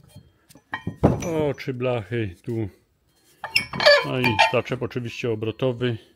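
A heavy metal bracket clunks down onto wood.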